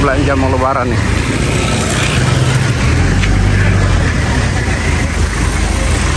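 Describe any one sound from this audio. Car and motorbike engines rumble nearby on a street.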